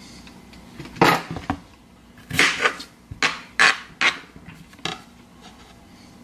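A knife chops through a cucumber onto a cutting board.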